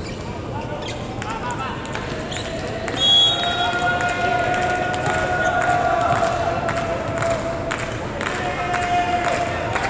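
Young men call out to each other on the court.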